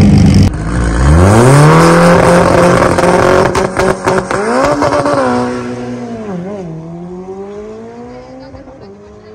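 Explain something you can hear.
A race car engine revs up sharply and the car speeds away, fading into the distance.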